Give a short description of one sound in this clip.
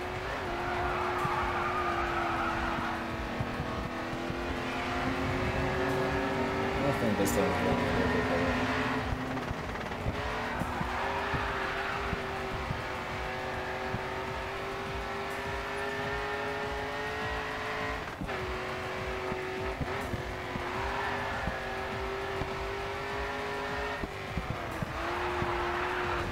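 A race car engine roars loudly at high revs, rising and dropping with gear changes.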